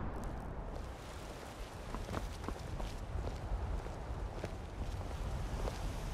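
Armoured footsteps clink on cobblestones.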